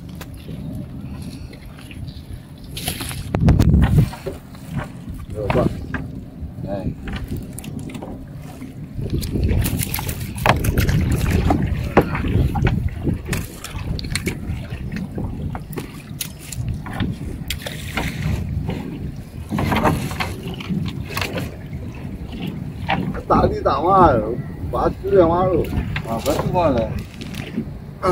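Water drips and splashes from a net pulled out of a river.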